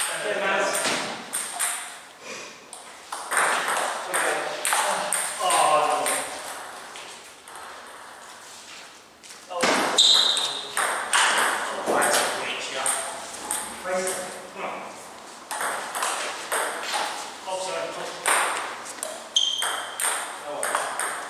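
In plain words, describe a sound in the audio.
A table tennis ball clicks against bats and a table in an echoing hall.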